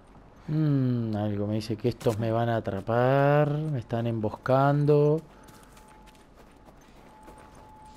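Footsteps crunch on snow and gravel.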